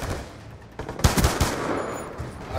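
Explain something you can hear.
A rifle fires a short burst of loud shots.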